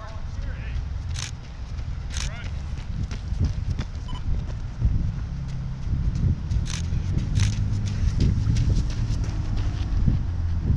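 Running footsteps slap on the pavement as runners pass close by.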